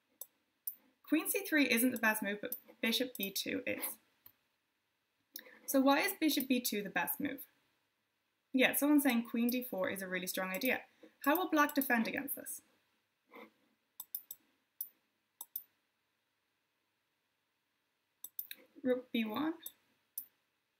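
A young woman talks calmly into a close microphone, pausing between phrases.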